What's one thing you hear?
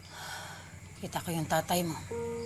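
A woman speaks calmly and close by.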